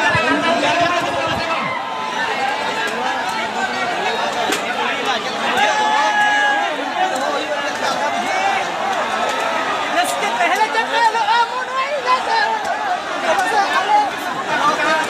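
A large crowd outdoors cheers and shouts nearby.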